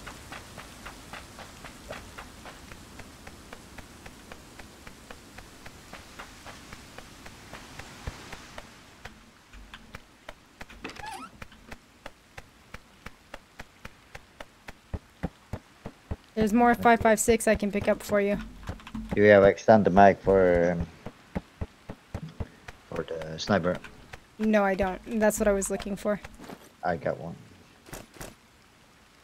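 Footsteps run quickly and steadily across hard ground.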